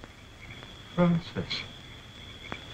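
An elderly man groans weakly.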